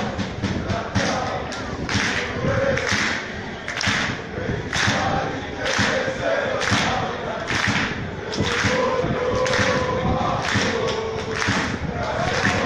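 A crowd of fans claps in a steady rhythm.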